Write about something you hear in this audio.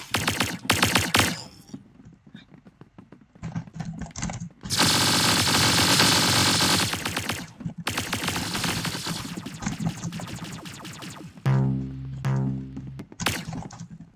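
Laser guns fire with short electronic zaps.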